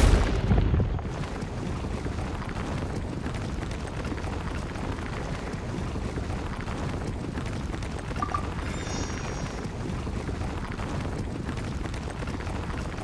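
A fiery rumble roars steadily as a burrowing creature races along.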